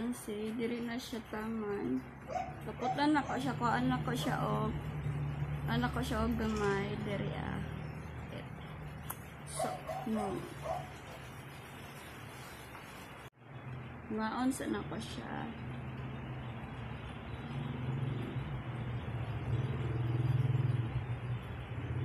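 Fingers brush through long hair.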